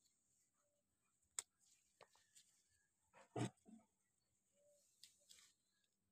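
Leaves rustle as a hand brushes through plants.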